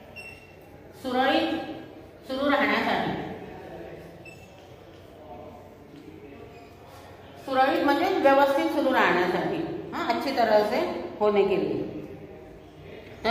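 An older woman speaks clearly and calmly, as if teaching, in an echoing room.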